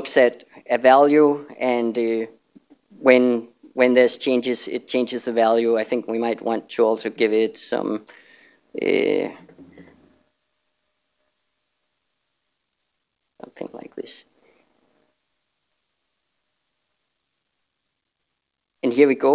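A man speaks calmly through a microphone, pausing at times.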